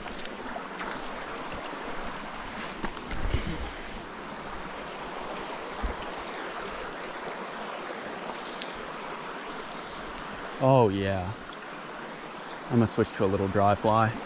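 A stream trickles and flows steadily outdoors.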